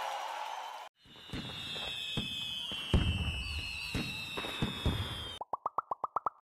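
Fireworks whistle and crackle.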